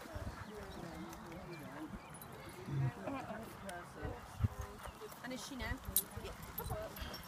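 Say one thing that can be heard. Men and women chat casually nearby outdoors.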